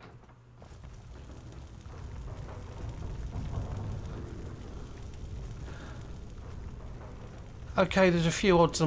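A magical storm creature crackles and rumbles low.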